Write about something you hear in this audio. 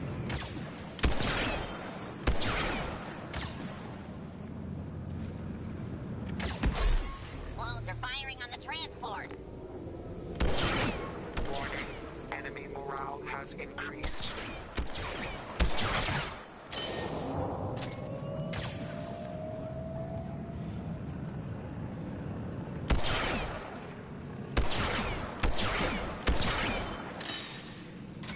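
Sniper rifle shots crack loudly, one at a time, with a ringing echo.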